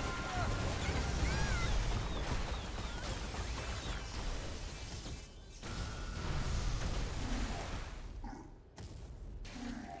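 Fiery spell effects roar and crackle in a game battle.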